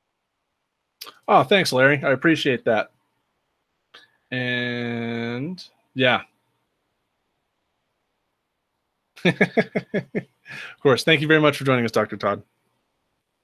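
A young man talks with animation over an online call.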